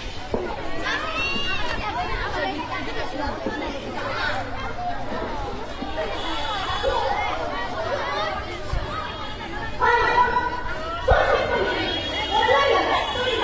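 Young girls speak with animation into a microphone, heard over a loudspeaker outdoors.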